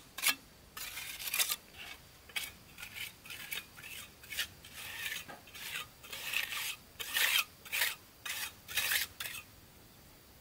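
Bricks clack as they are set in place.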